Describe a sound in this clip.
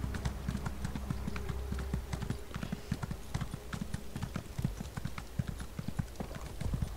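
Horse hooves thud rapidly on packed snow.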